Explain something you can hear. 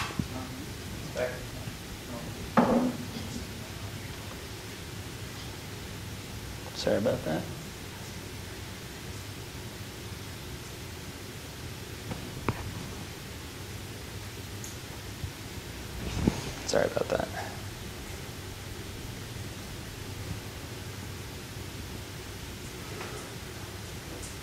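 A man speaks in short bursts in a room with some echo.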